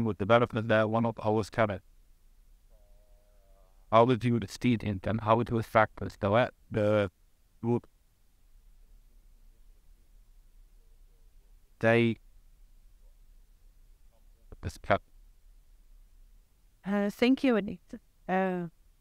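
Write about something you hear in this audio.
A man speaks calmly into a microphone, heard over loudspeakers in a large hall.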